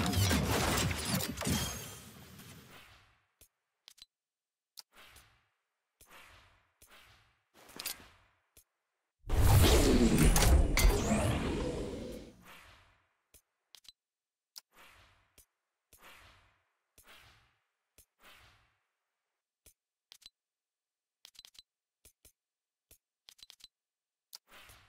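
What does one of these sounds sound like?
Soft game menu sounds click and whoosh as items switch.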